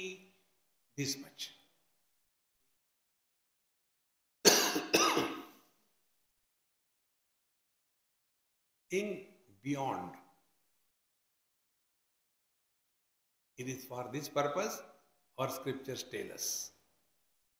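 An elderly man speaks slowly into a microphone, pausing between phrases.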